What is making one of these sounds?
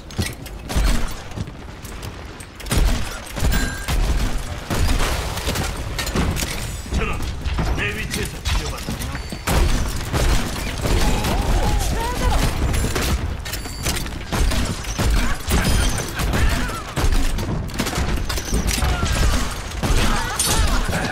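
Rapid gunshots pop in quick bursts.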